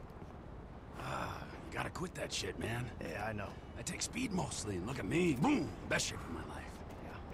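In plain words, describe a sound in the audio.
A man talks with animation, close by.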